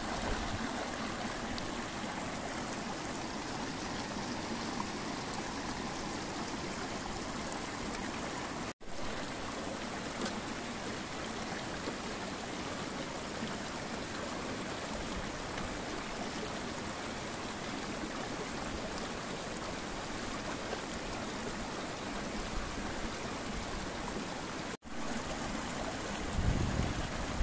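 Water splashes as a man washes something in a bucket.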